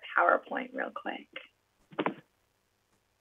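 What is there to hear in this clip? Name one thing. A man speaks briefly and calmly through an online call.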